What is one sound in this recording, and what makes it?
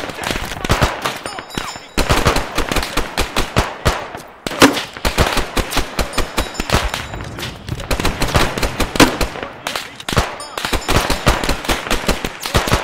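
Rapid gunfire crackles in bursts across open ground.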